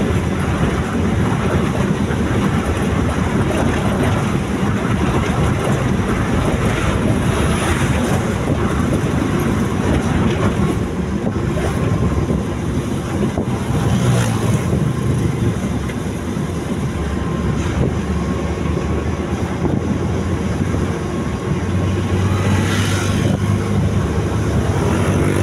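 A vehicle's engine hums steadily from inside the cab while driving.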